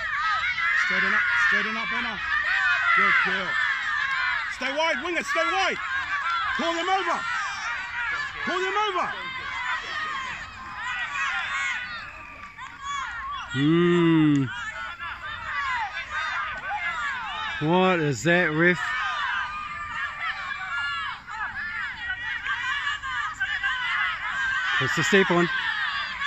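Women shout loudly nearby.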